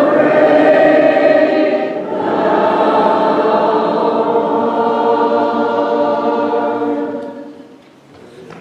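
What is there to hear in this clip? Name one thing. A congregation sings a hymn together in a large echoing hall.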